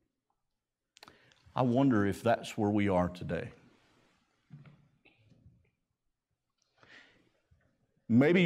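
A middle-aged man preaches with feeling into a microphone, heard in a large room.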